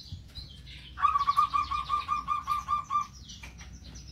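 A bird sings a fast, repeated trill.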